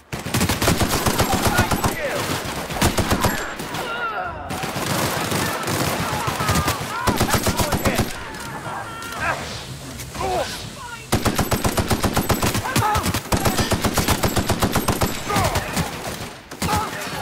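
A rapid-fire gun shoots in loud bursts.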